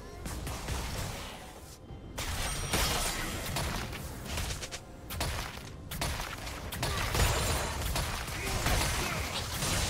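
Magic blasts and clashing hits crackle in a fast fight.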